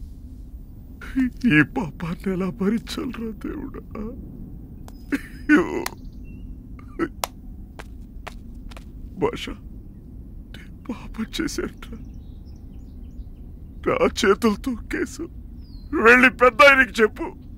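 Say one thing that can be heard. A man speaks in a pained, emotional voice nearby.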